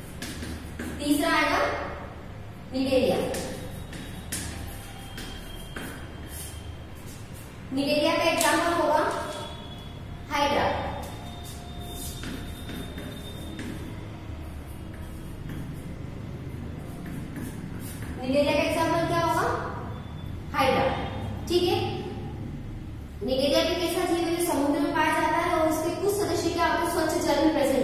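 A young woman speaks in a clear, teaching voice, close by.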